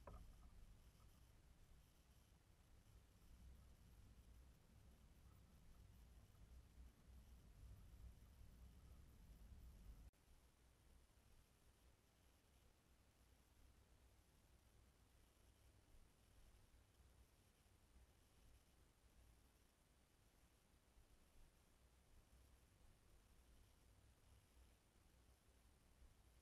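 Small birds peck at seed in a feeder.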